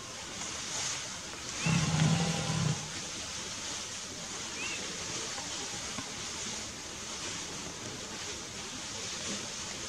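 Elephants' feet shuffle and thud softly on a paved road.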